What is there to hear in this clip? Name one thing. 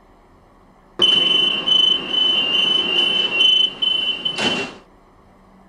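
A chime rings as train doors close.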